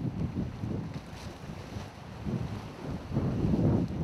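Small waves ripple and lap on open water.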